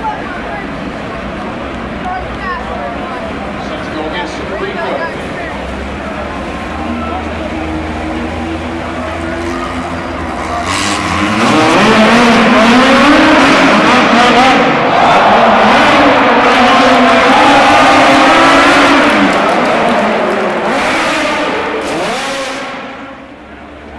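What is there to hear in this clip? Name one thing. Race car engines roar and whine.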